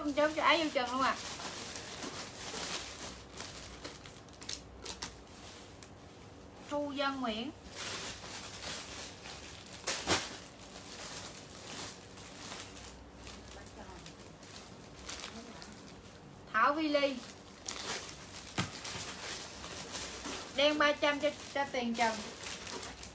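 A young woman speaks in short bursts nearby.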